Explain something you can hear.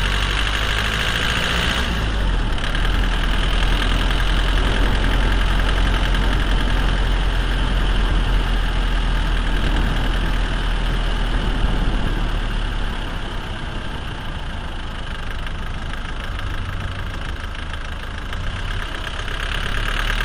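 A drive shaft turns and rumbles steadily beneath a car.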